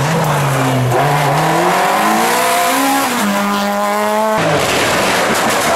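A second racing car engine approaches and roars past.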